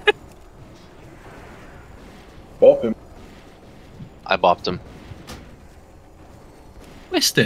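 Magic spells whoosh and chime in short bursts.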